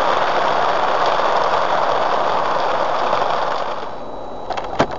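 Tyres hiss loudly on a wet road in the rain.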